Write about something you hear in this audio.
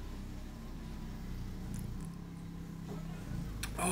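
A young man gulps a drink from a carton.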